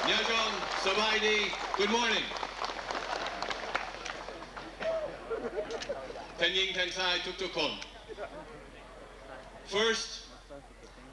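A man speaks with animation into a microphone, heard over a loudspeaker outdoors.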